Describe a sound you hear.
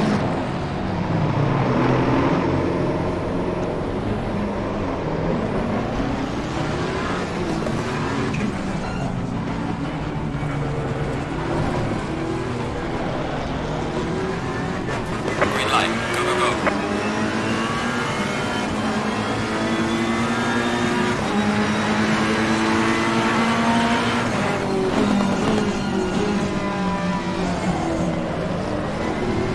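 Other racing cars' engines whine close by.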